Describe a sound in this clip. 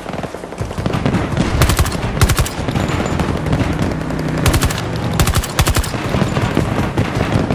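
A rifle fires in fast bursts.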